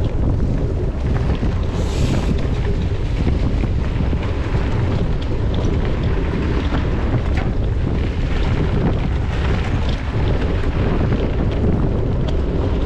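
Bicycle tyres roll and crunch over a dirt trail.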